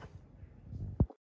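A sharp metallic knock sounds.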